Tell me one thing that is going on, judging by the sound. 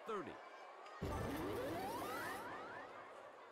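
A stadium crowd cheers loudly.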